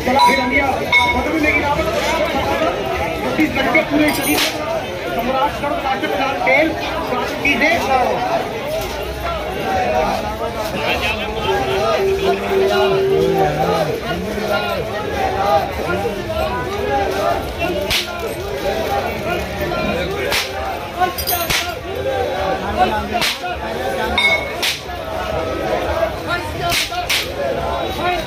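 A crowd of men chants and sings together outdoors.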